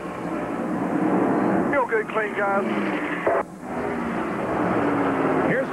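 A race car engine roars steadily nearby.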